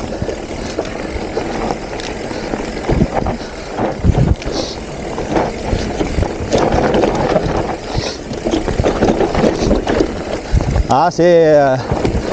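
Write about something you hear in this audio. A bicycle rattles and thumps over bumps.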